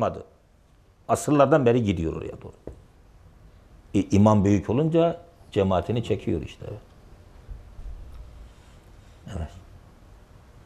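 A middle-aged man speaks calmly through a clip-on microphone, pausing between phrases.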